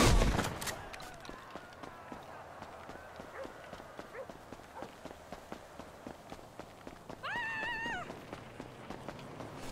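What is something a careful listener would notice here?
Footsteps slap quickly on pavement as someone runs.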